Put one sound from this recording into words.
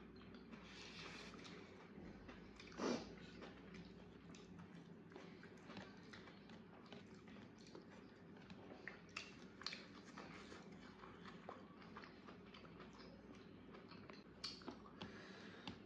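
A man and a woman chew and smack food up close.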